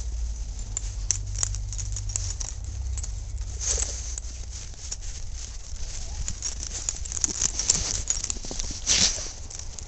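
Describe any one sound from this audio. A dog romps and scrabbles through crunching snow.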